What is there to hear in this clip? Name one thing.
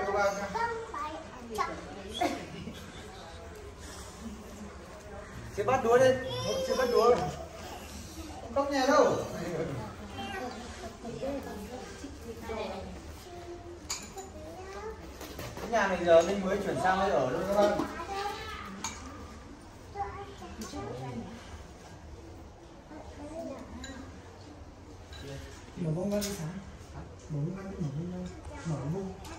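A group of men, women and children talk casually close by.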